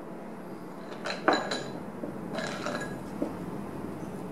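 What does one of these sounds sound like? A glass bottle knocks and clinks as it is handled.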